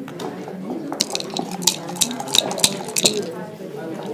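Dice rattle and tumble onto a wooden board.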